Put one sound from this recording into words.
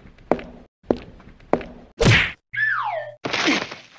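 A body thuds onto a floor.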